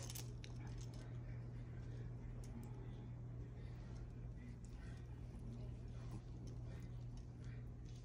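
A small dog chews and gnaws on a toy.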